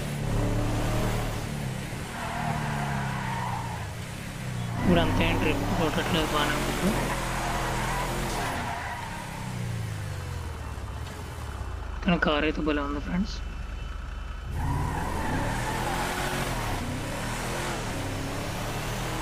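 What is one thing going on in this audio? An SUV engine revs up and down through the gears as it drives.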